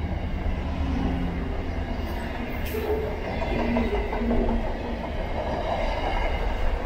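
A freight train rumbles steadily past close by.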